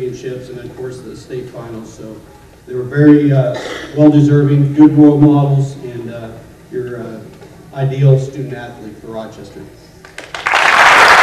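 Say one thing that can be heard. A man speaks into a microphone over a loudspeaker in a large hall.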